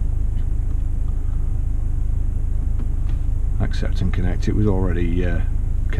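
A control knob clicks softly as a hand turns it.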